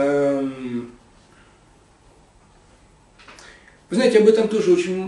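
A man speaks close by, pausing between phrases.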